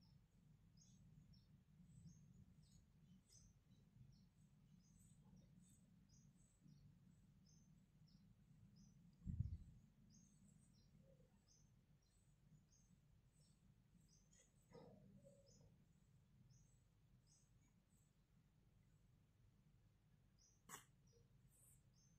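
Fingers faintly rustle a thread through a needle.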